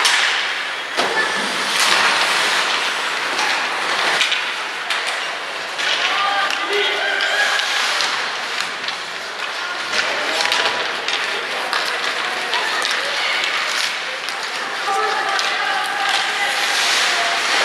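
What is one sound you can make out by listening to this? Hockey sticks clack against a puck on ice.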